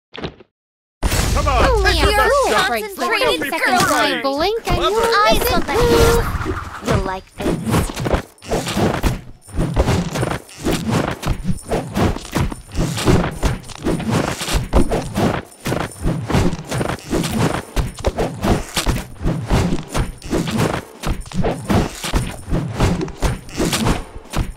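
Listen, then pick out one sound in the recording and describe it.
Mobile game battle sound effects clash and clink.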